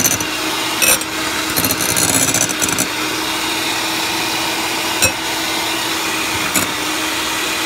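Mixer beaters clatter against a glass bowl.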